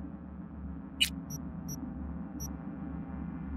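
Short electronic beeps and a click sound from a menu.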